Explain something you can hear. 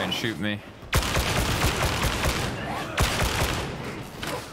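A machine gun fires rapid bursts of loud shots.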